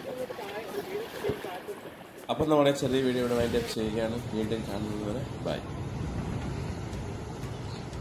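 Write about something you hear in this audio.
Waves wash against rocks.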